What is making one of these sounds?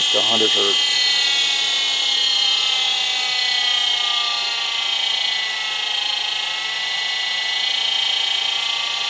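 An electric motor's whine slowly shifts in pitch as its speed changes.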